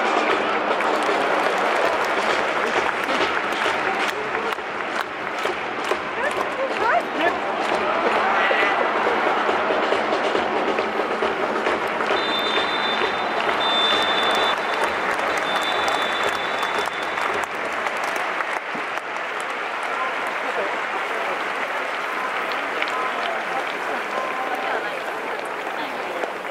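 Spectators clap their hands in the stands.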